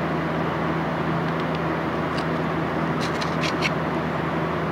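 Sticky tape crinkles and rustles close by.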